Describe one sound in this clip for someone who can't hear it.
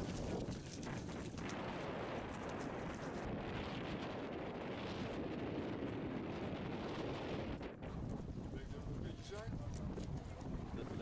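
Strong wind blusters loudly outdoors.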